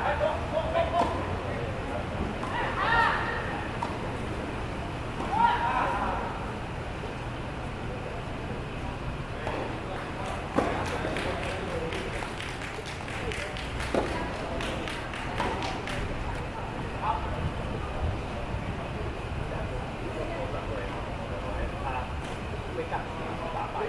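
Tennis balls are struck with rackets, in sharp pops.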